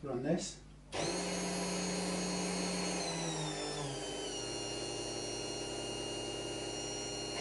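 A bench machine hums steadily, its pitch dropping slightly after a few seconds.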